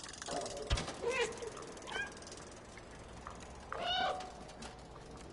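A cat meows several times.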